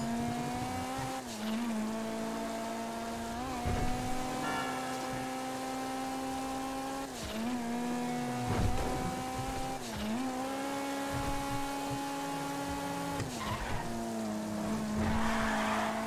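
A car engine drones steadily, dipping in pitch at each gear change.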